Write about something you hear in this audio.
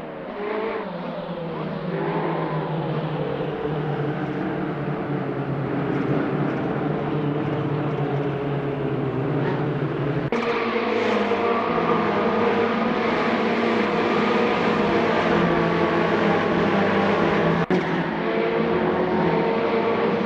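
Many racing car engines roar and whine together at high revs.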